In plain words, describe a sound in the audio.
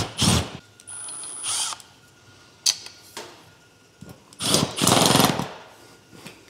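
A power drill whirs in short bursts.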